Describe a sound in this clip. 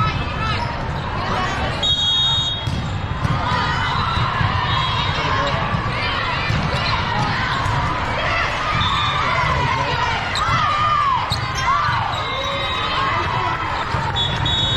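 Many voices chatter and shout throughout a large echoing hall.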